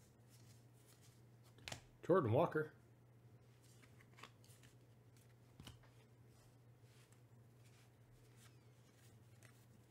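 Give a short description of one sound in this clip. Trading cards rustle and flick softly as they are shuffled by hand.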